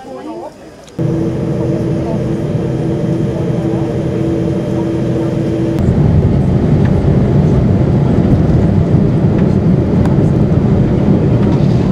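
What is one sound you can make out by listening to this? An airliner rumbles as it rolls along the runway.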